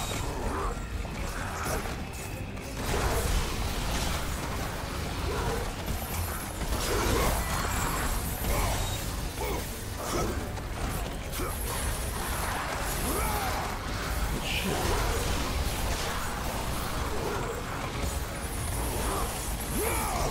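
Fiery blasts whoosh and crackle.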